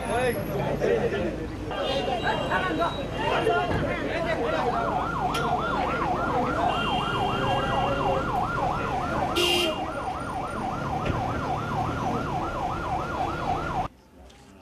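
A crowd of men talk and murmur outdoors.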